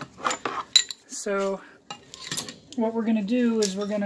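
A metal tool clanks down onto a hard floor.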